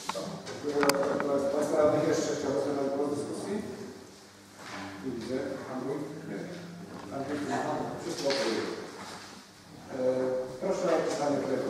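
An elderly man speaks calmly from across the room.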